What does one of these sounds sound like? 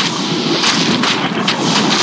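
A burst of fire roars.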